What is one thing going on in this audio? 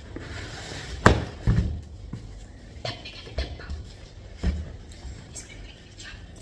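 A cardboard box rustles and thumps as it is handled.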